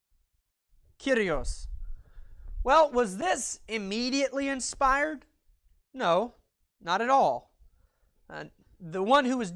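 A young man speaks with animation, as if lecturing.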